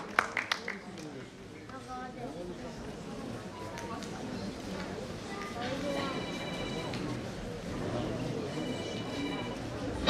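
Footsteps shuffle across a wooden stage.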